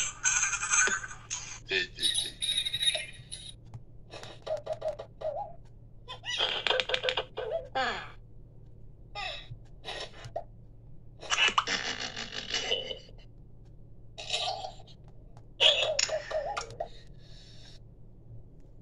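Playful game jingles and sound effects play from a small device speaker.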